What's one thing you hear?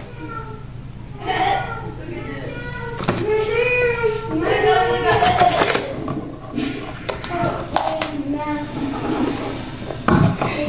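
A boy speaks softly close to a microphone.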